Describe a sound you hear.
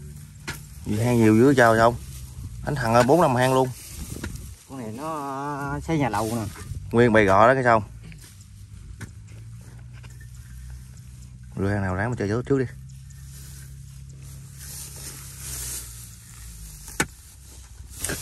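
A shovel scrapes and cuts into damp soil.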